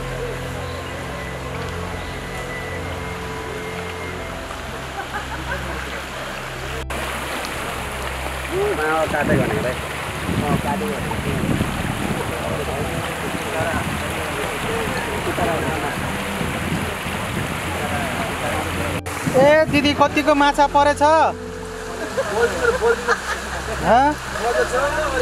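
Floodwater rushes and churns steadily.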